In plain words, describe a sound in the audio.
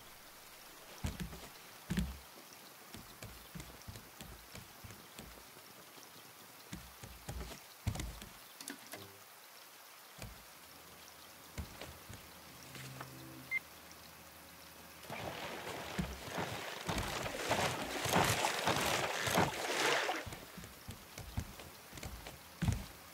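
Footsteps thump on wooden planks.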